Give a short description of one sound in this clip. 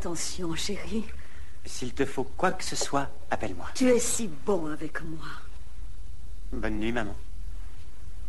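An elderly woman speaks softly and warmly, close by.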